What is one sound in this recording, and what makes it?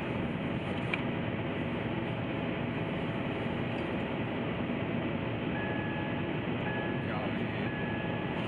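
Tyres rumble steadily on the road.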